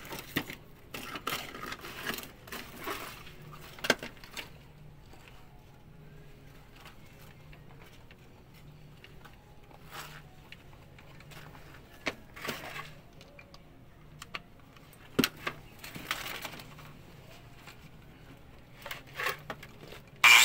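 Metal clinks and rattles as hands work with wire.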